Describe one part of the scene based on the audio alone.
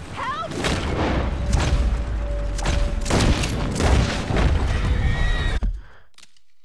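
Horse hooves clop on the ground.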